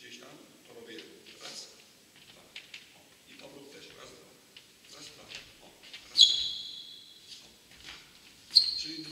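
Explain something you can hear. A table tennis ball clicks sharply off a paddle in an echoing hall.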